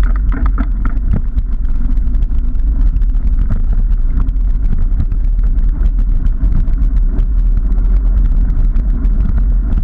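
Wind rumbles loudly and steadily across the microphone.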